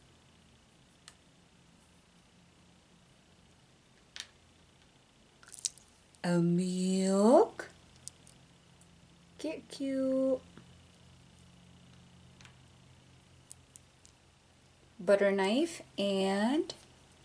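Small plastic trinkets click softly against each other in a hand.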